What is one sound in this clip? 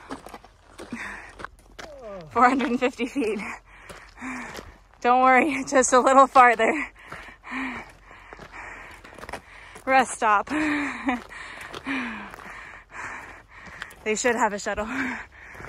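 Boots crunch on gravel as a hiker walks.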